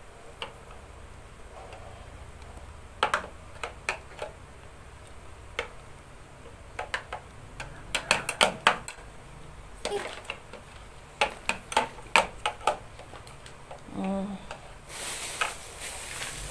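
Plastic parts click and snap as they are adjusted by hand.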